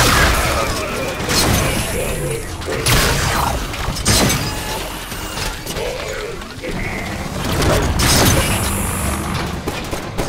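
Energy blades swing and slash with electric crackles.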